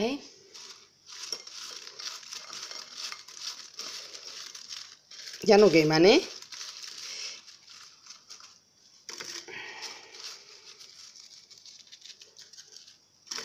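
Hands toss fritters in sugar in a glass bowl, with the sugar grains crunching.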